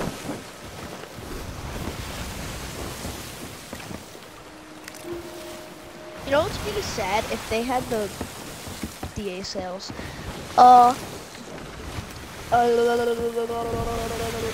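Rough sea waves splash and rush against a wooden ship.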